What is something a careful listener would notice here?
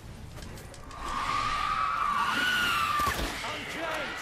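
A winged creature screeches shrilly.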